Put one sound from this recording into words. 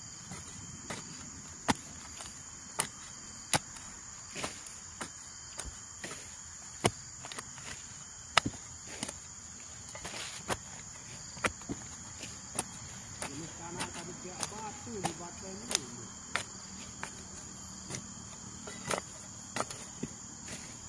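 A hoe chops into dry, stony soil again and again.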